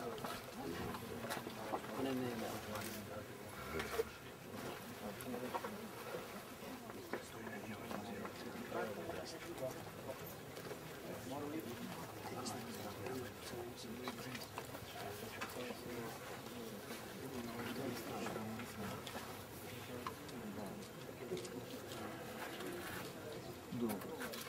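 Several men talk calmly nearby outdoors.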